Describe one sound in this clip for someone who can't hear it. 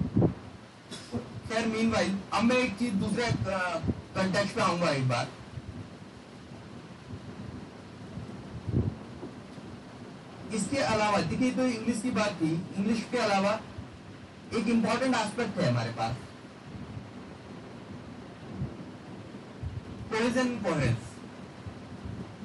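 A man lectures in bursts through a microphone in an echoing room.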